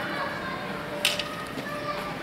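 Steel longswords clash together.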